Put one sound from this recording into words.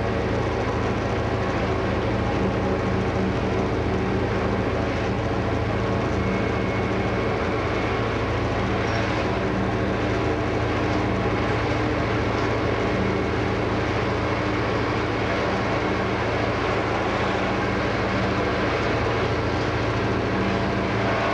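A train's engine hums steadily as it travels along the track.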